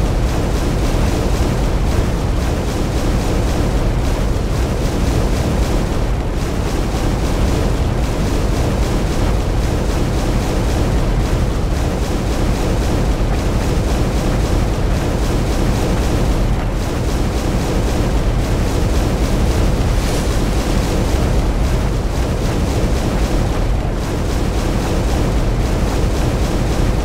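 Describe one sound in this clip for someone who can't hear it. Lava bubbles and roars in a deep, steady rumble.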